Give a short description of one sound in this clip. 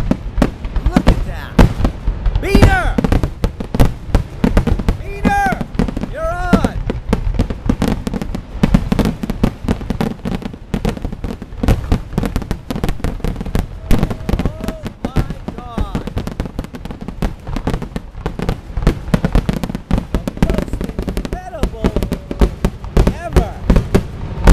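Fireworks boom and bang rapidly, close by.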